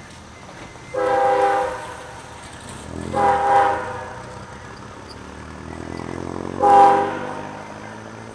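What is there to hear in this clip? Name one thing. A train horn blows three long blasts in the distance.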